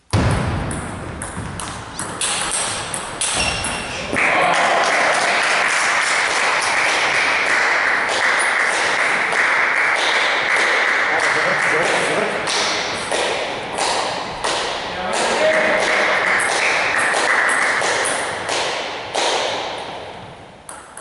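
A table tennis ball clicks back and forth off paddles and the table, echoing in a large hall.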